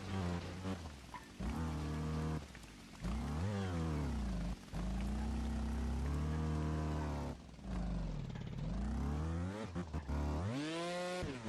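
A motorbike engine revs up and down, rising and falling in pitch.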